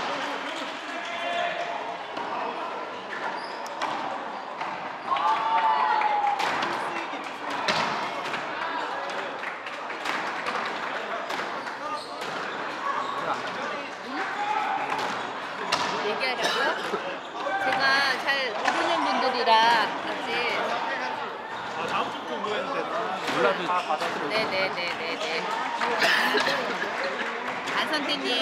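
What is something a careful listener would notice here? A squash ball smacks sharply against the walls and racquets.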